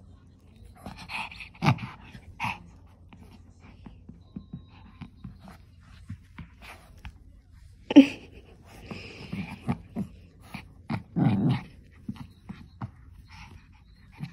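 A hand rustles a soft cloth garment close by.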